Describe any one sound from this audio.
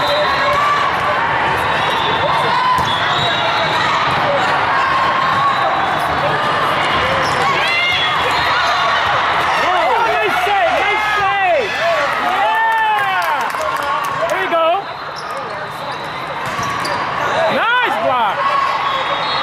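A volleyball is struck with a hollow thump.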